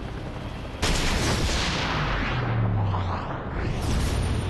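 A bullet whooshes through the air in slow motion.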